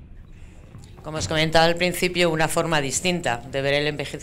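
A woman speaks calmly into a microphone over loudspeakers.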